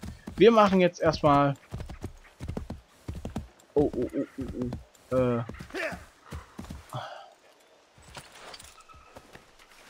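A horse's hooves thud as it gallops over soft ground.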